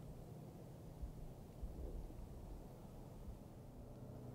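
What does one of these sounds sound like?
A deer steps softly through dry leaves.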